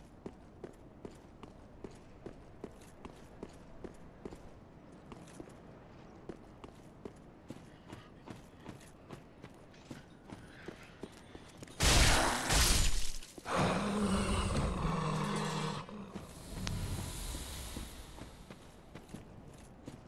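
Armored footsteps thud in a quick, steady run.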